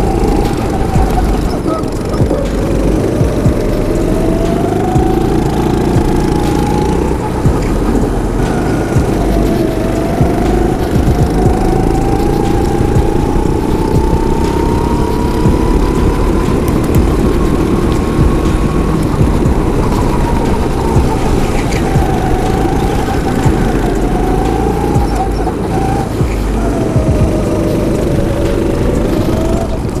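A small kart engine buzzes loudly close by, its pitch rising and falling with the speed.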